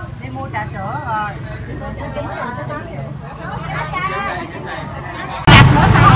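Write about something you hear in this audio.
Women talk over each other close by in a busy crowd.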